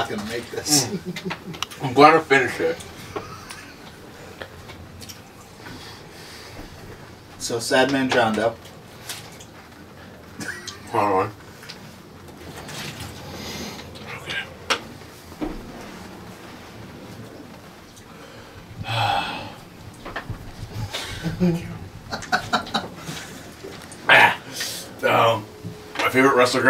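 A second man talks close by.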